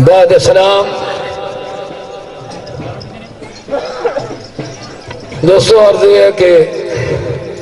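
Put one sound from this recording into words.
An elderly man sings in long, drawn-out phrases through a loudspeaker, with a ringing echo.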